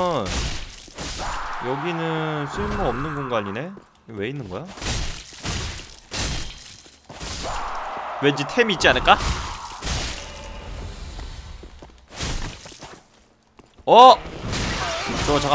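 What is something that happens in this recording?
Metal weapons clash and strike in a game.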